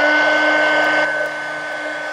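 An airbrush hisses as it sprays paint.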